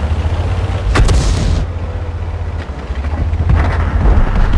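A shell explodes nearby.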